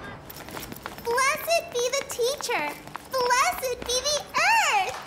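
Children shout excitedly in an echoing hall.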